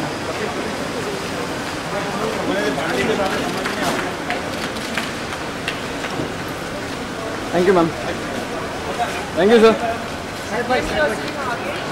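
Several young men talk and call out with excitement close by.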